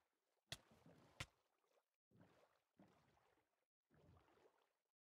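Oars splash through water in repeated strokes.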